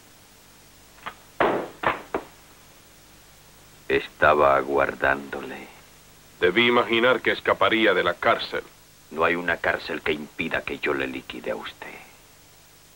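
A man speaks tensely and firmly, close by.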